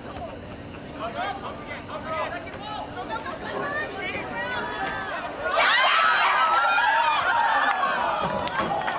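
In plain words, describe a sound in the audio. Young men shout to each other outdoors across a field.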